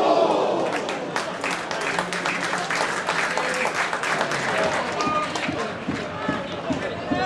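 A crowd claps rhythmically.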